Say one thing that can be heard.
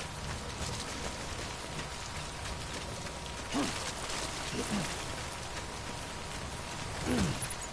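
Footsteps crunch over loose rocky ground.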